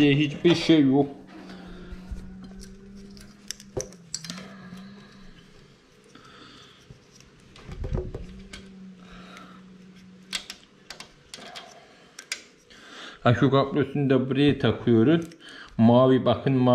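Small plastic and metal parts click as a wire connector is fitted.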